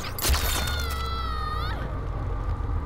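A woman screams in agony.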